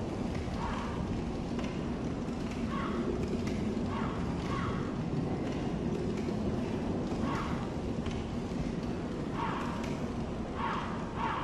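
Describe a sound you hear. Armoured footsteps clink on stone at a steady walking pace.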